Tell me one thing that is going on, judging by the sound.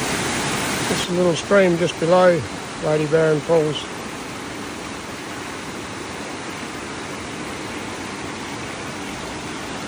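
A shallow creek trickles and babbles over stones.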